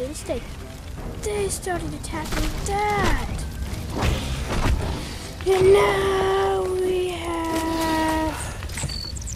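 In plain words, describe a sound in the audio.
A dinosaur cries out in short, wavering calls.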